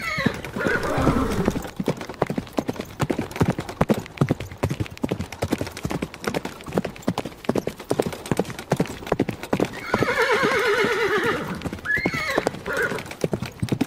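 A horse's hooves thud in a quick rhythm on grass.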